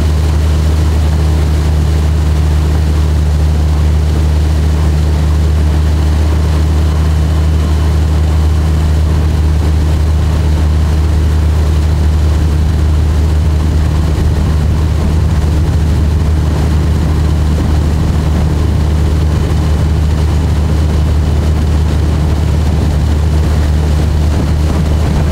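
Water rushes and splashes along a small boat's hull.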